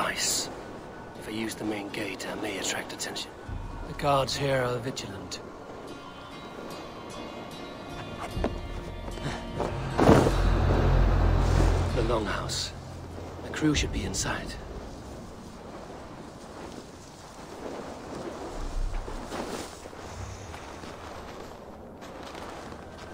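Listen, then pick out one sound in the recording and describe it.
Footsteps crunch softly through snow.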